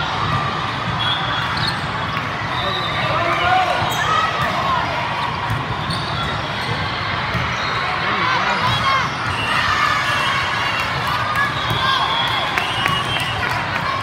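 Young women call out to each other during play.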